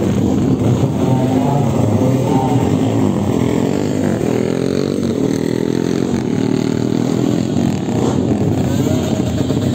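A drag racing motorcycle engine runs.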